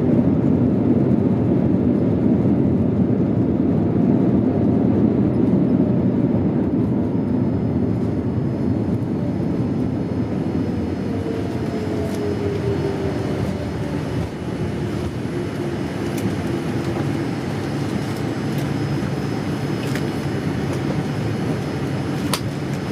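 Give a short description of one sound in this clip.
A jet engine roars steadily inside an airplane cabin, slowly easing off as the plane slows on the runway.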